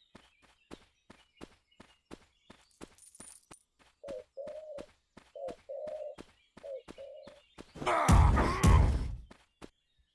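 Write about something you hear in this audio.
Footsteps tread at a steady, quick pace.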